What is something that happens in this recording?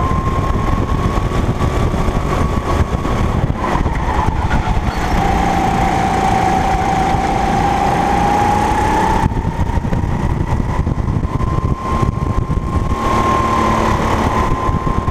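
A go-kart engine whines loudly up close, rising and falling in pitch through the corners.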